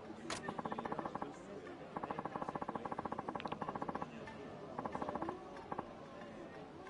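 Rapid electronic blips tick in short bursts.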